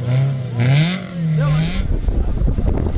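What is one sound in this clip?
A rally car engine revs up and down.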